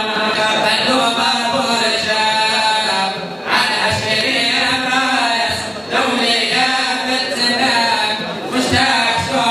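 A middle-aged man chants loudly into a microphone, his voice carried over loudspeakers.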